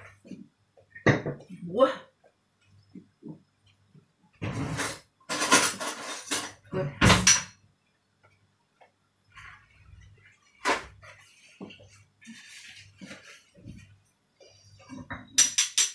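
Kitchen utensils clatter against a pot.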